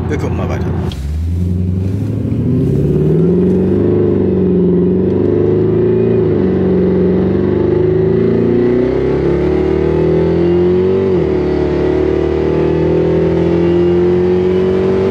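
A car engine roars and revs up through the gears as the car speeds up.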